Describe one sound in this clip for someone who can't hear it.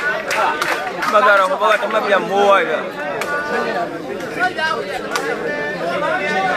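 A crowd of men chatter and call out nearby outdoors.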